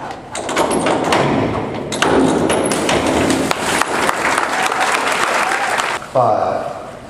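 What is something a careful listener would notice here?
A crowd cheers and applauds loudly in an echoing hall.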